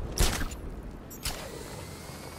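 A grappling gun fires with a sharp snap.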